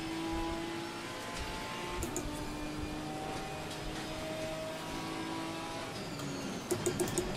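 Heavy rain patters on a car's windscreen.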